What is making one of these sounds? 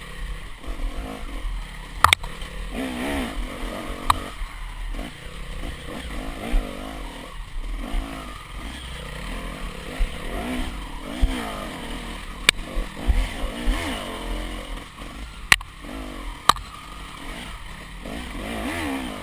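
A dirt bike engine revs up and down close by, rising and falling in pitch.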